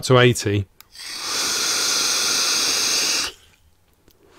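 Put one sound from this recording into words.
A man draws a long hissing breath through a vape.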